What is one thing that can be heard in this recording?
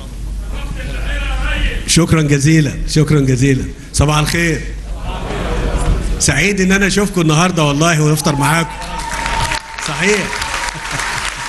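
A man speaks with animation into a microphone, heard through loudspeakers in a large hall.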